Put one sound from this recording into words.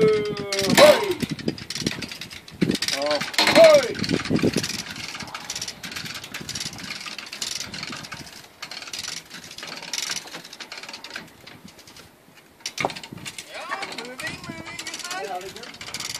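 Heavy timbers creak and scrape as they slide over steel rails.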